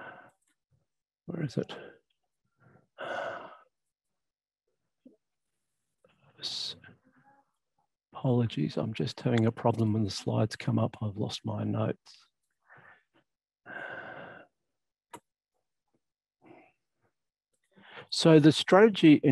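A man speaks calmly in bursts over an online call.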